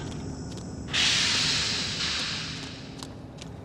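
A heavy sliding door hisses open.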